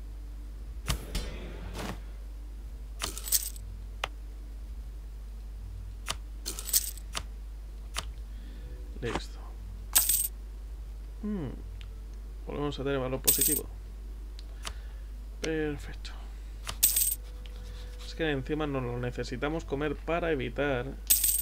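Interface clicks and chimes sound sharply several times.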